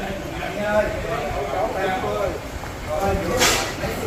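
Men and children chatter nearby.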